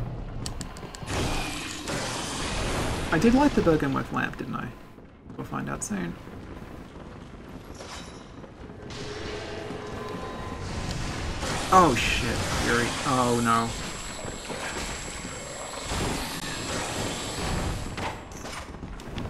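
A monster screeches and growls.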